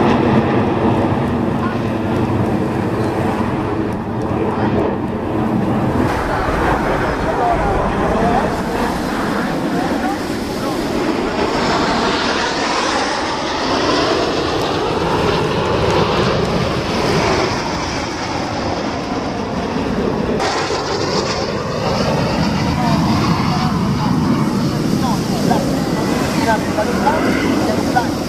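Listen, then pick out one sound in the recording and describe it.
Jet planes roar overhead in a loud, steady rush.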